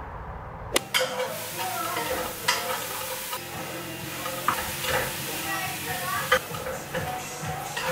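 Utensils clatter against a pan on a stove.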